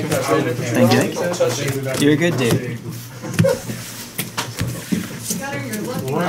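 Card deck boxes knock onto a table.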